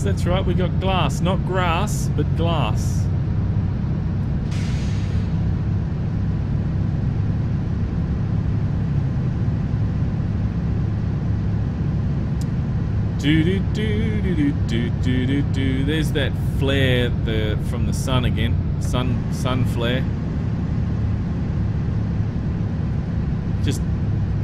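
A truck engine drones low and steady.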